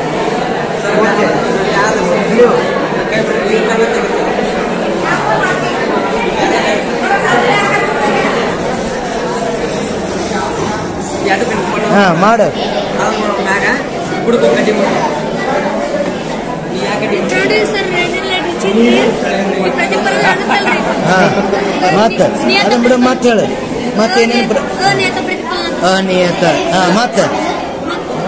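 Young boys talk and murmur close by.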